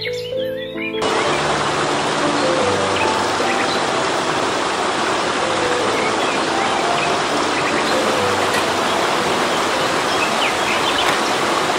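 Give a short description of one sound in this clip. A stream rushes and splashes over rocks.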